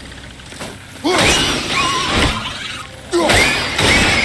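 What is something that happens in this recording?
An axe strikes a target with a sharp impact.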